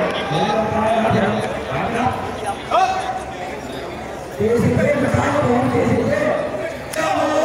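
A crowd murmurs and chatters in the background outdoors.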